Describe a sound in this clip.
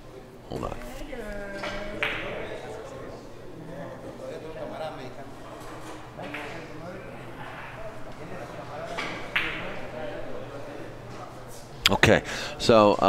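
Men talk quietly in the background.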